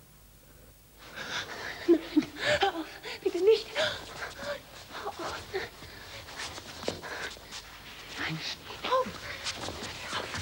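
Clothes rustle against each other.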